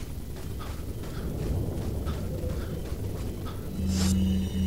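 Footsteps tread on a dirt path.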